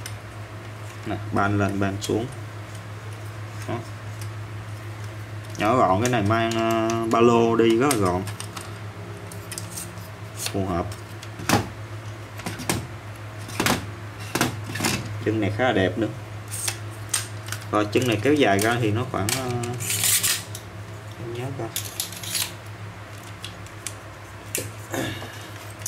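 Metal tripod parts click and clack as they are handled.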